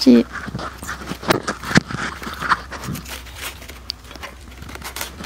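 Crisp cabbage leaves rustle and crackle as hands handle them.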